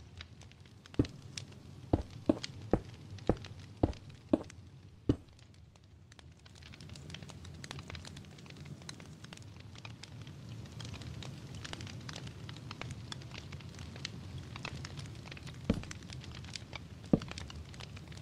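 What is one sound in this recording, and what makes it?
Blocks thud into place in a quick series of knocks.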